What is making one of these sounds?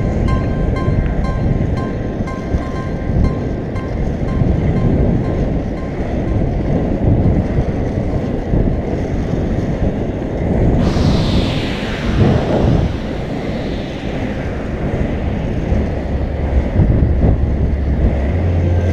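Inline skate wheels roll and rumble on asphalt.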